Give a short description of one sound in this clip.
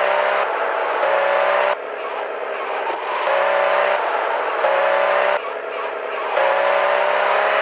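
Tyres screech on the road as a car drifts.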